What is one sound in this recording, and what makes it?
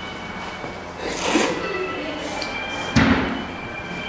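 A man loudly slurps noodles.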